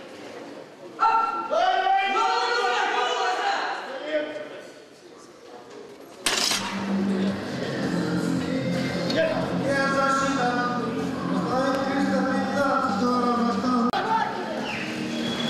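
Several men shout loud encouragement in a large echoing hall.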